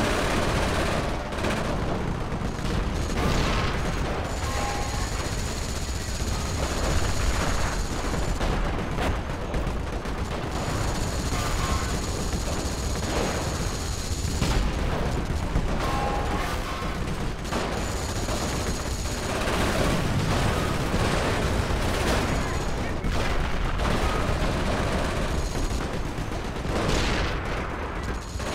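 Explosions boom and rumble again and again.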